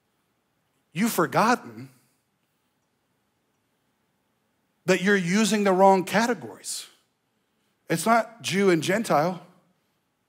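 A man speaks with animation through a microphone in a large hall, in short bursts with pauses.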